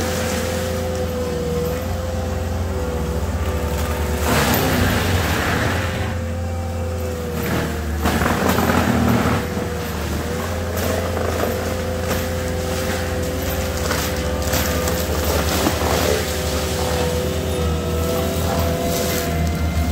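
A tracked machine's diesel engine drones steadily nearby.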